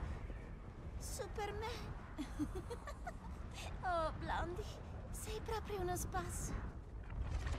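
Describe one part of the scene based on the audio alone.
A young woman speaks playfully, close up.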